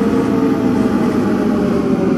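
Tyres rumble over a cobbled road.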